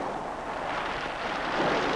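Waves wash onto a pebble beach.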